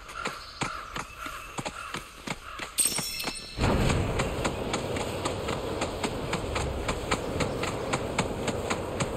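Footsteps thud quickly on dirt and grass.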